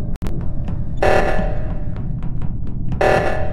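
A game's alarm blares in short loud bursts.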